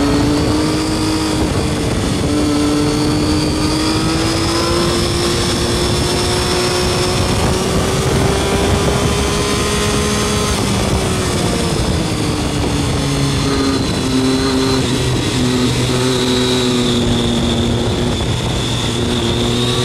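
A three-cylinder motorcycle engine rises and falls in pitch through winding bends.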